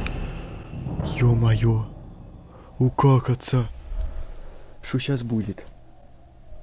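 A young man exclaims in surprise, close to a microphone.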